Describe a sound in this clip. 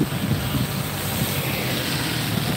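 Motorcycle tyres hiss on a wet street.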